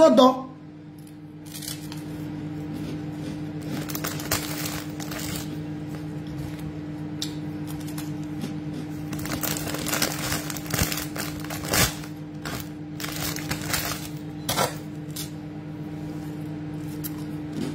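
A woman chews and munches on food close up.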